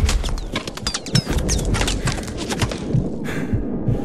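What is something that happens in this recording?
A rifle fires a couple of close, sharp shots.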